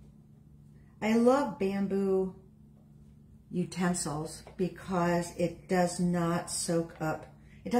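A young woman speaks calmly close by.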